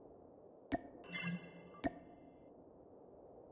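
A bright reward chime rings out briefly.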